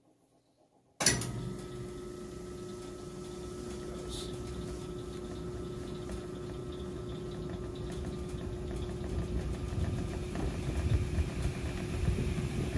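A washing machine drum spins with a loud, steady whir that grows louder.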